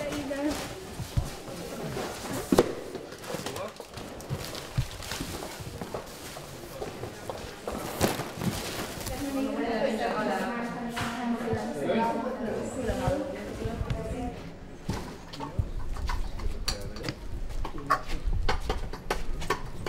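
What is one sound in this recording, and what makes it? Cardboard boxes thump and scrape as they are lifted and stacked.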